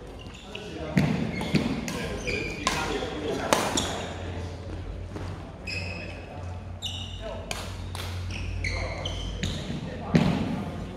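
Shuttlecocks are struck with rackets, with sharp pops echoing in a large hall.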